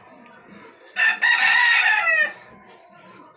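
A kitten mews loudly.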